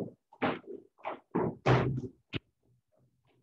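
Sneakers tap and thud on a hard floor.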